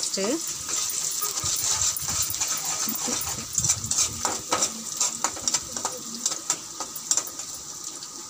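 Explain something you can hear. A metal spatula scrapes and clatters against a metal pan.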